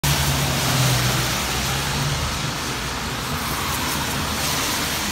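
Light rain patters steadily outdoors.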